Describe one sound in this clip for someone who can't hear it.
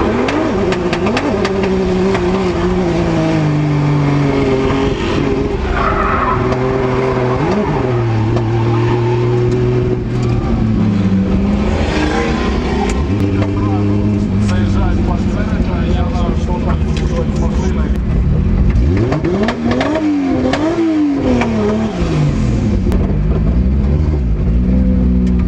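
Tyres squeal and screech as the car slides.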